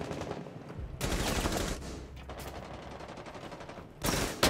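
Gunfire bursts out loudly from a game.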